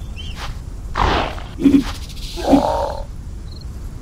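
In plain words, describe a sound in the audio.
A big cat snarls and roars loudly in a sudden attack.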